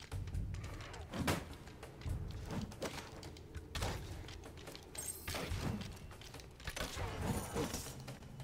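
Swords clash and slash in quick bursts.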